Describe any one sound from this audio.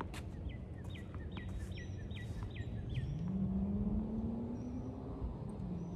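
Footsteps scuff softly on a hard outdoor court.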